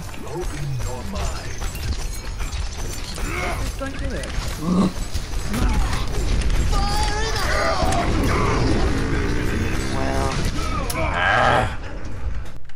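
Rapid gunfire and energy blasts crackle and boom.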